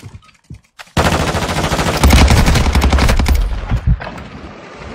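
Gunshots fire in rapid bursts.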